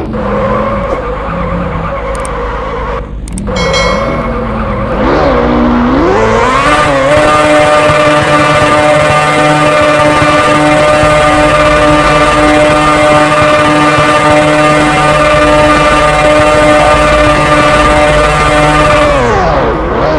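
A motorcycle engine revs up and holds a high, steady whine, then winds down.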